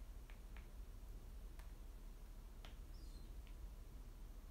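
Soft fabric rustles faintly close by.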